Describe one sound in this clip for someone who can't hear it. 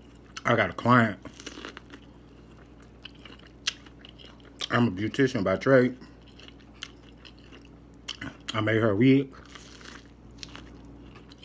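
A man bites and chews corn with crunchy, wet sounds.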